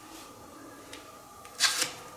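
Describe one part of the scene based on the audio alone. A hand slides a card across a soft cloth surface.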